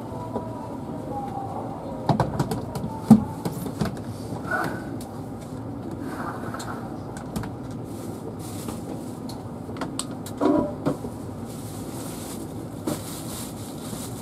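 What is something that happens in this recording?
Footsteps and bags knock and bump as passengers walk past.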